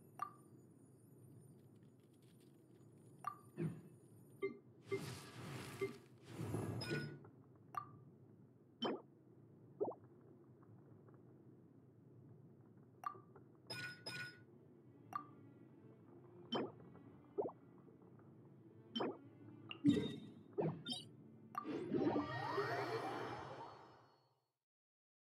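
Short game menu clicks and chimes sound as options are selected.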